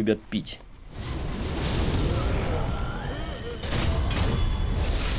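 A burst of fire roars loudly.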